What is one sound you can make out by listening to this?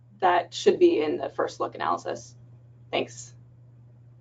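A woman speaks through an online call.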